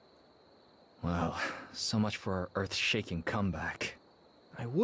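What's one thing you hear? A young man speaks calmly and clearly, close by.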